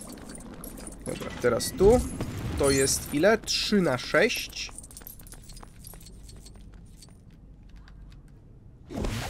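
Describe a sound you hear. Small coins tinkle as they are collected in a game.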